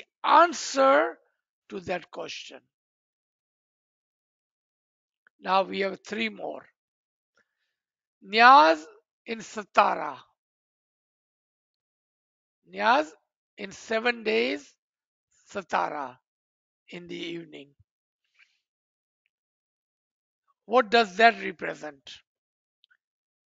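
An elderly man speaks calmly in short phrases with pauses, heard through an online call.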